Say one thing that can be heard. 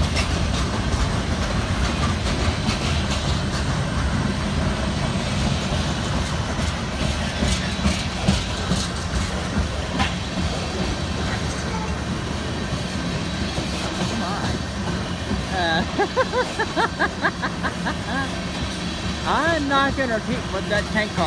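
Train wheels clack over the rail joints.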